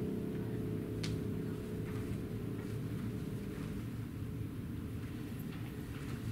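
A piano plays softly.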